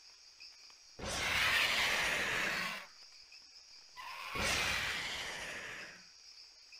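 Large birds screech harshly.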